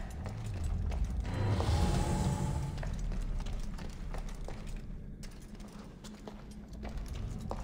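Soft footsteps patter on stone.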